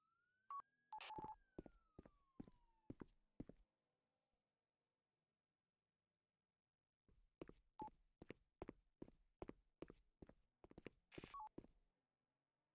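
Footsteps thud steadily on the ground.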